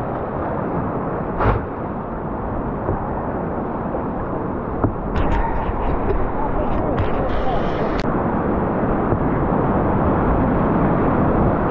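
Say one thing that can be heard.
Rushing river water churns and roars close by, louder toward the end.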